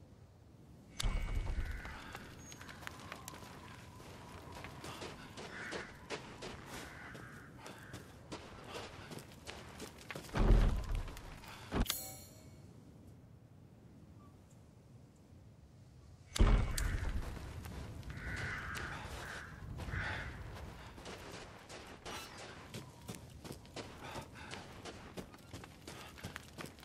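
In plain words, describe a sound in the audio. Footsteps crunch through snow at a steady walking pace.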